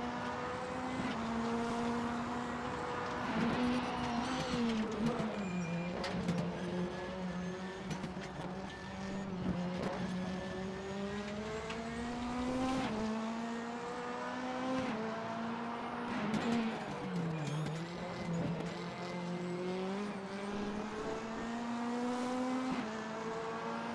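A racing car engine roars loudly, rising in pitch through the gears and dropping as it brakes for corners.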